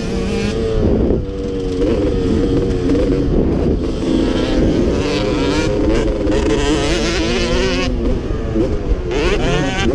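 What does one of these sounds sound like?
Another dirt bike engine whines nearby.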